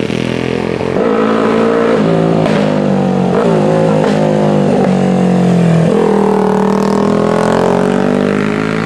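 A second vintage racing motorcycle engine revs and changes pitch as it passes close by.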